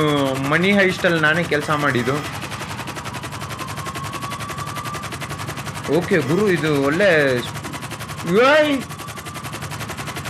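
An aircraft engine drones steadily as it speeds up.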